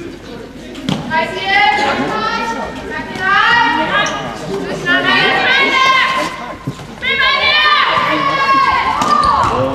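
Young women shout and call out to each other in an echoing sports hall.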